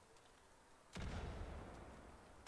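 A firebomb bursts into flames with a whoosh and crackles.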